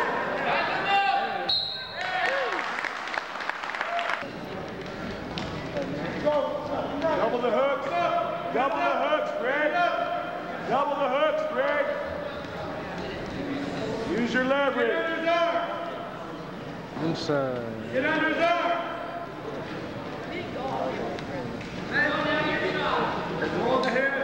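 Men shout loudly from the sidelines in an echoing hall.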